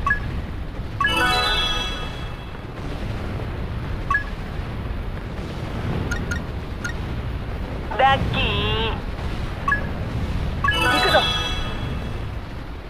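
A bright chime rings out from a game menu.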